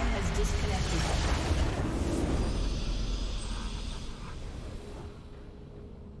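A game's victory fanfare swells loudly and then fades away.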